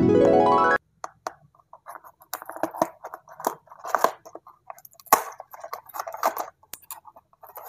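Fingers rustle and scrape a cardboard box up close.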